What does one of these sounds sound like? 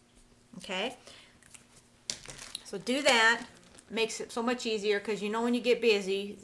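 A plastic bag crinkles as it is picked up.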